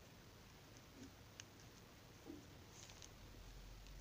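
Plastic sheeting crinkles softly under a hand.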